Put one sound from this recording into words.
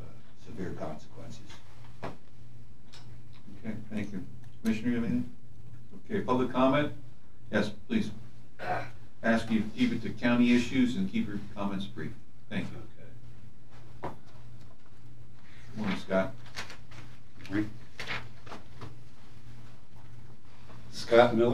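A man speaks calmly through a microphone in a room with a slight echo.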